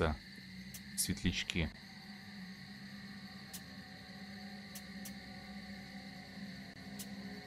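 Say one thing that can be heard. Short soft clicks tick now and then as menu settings change.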